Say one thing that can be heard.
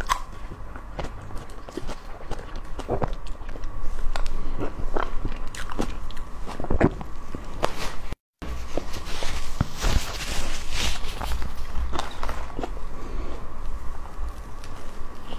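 A young woman chews soft cake with wet mouth sounds, close to a microphone.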